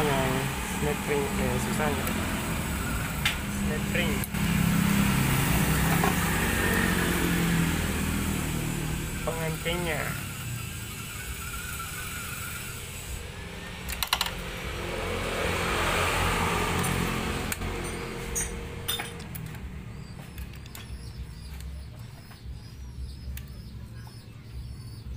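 Metal parts clink and tap against each other close by.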